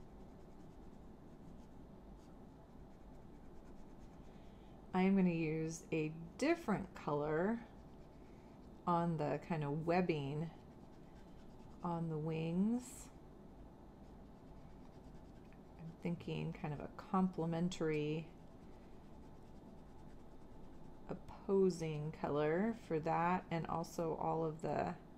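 A marker scratches softly across paper.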